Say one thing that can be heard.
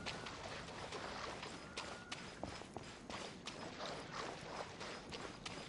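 Water splashes underfoot as a game character runs.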